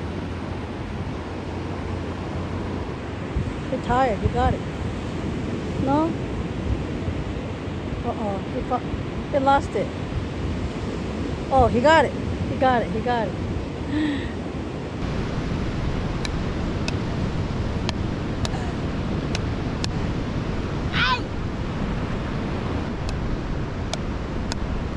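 Waves break and wash onto a beach steadily.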